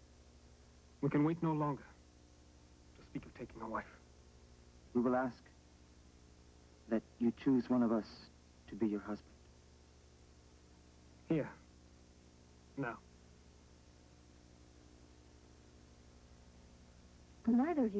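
A man speaks calmly in short phrases with long pauses.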